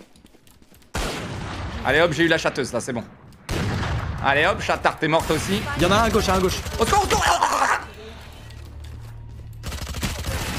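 Game gunshots crack sharply.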